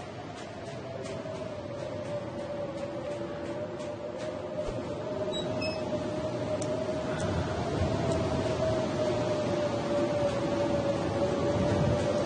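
Wind howls steadily and slowly grows louder.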